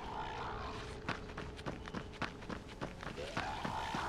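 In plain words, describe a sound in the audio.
Footsteps rustle through tall grass and brush.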